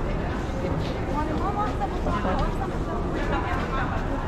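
Women talk nearby in a large echoing hall.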